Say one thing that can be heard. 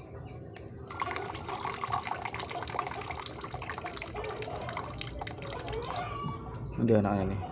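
Water pours through a metal strainer and splashes into a tub of water.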